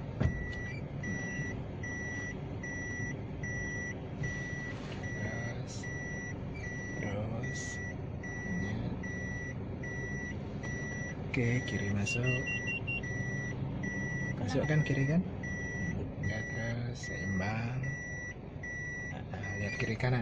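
A car engine hums, heard from inside the cabin.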